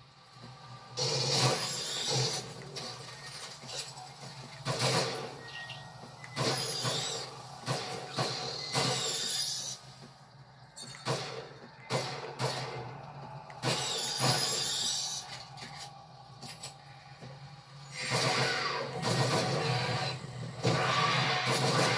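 Gunshots from a video game crack in repeated bursts through a television speaker.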